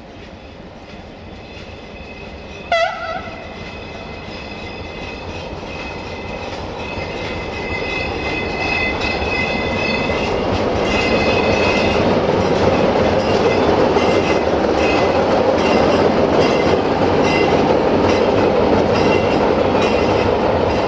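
A diesel locomotive engine rumbles, growing louder as it approaches.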